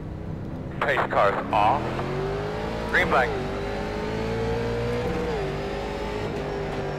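A race car engine revs up and climbs in pitch as the car accelerates.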